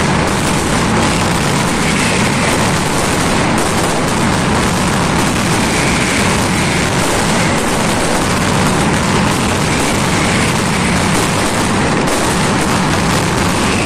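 Firecrackers crackle and bang in a rapid, unbroken barrage overhead.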